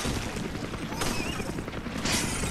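A gun fires sharp shots.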